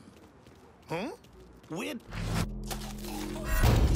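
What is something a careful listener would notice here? A man grunts and struggles as he is grabbed.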